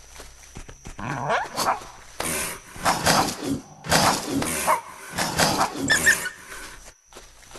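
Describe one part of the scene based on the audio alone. A large beast growls and snarls fiercely.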